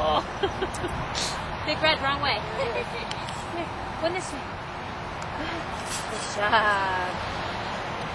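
A woman talks to a dog nearby in a high, coaxing voice.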